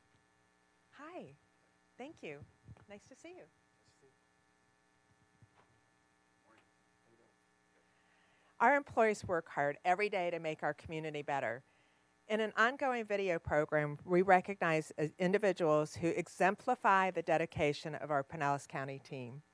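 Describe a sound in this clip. A woman speaks calmly into a microphone, heard through a loudspeaker in a large room.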